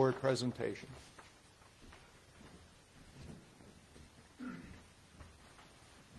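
Footsteps walk across a floor.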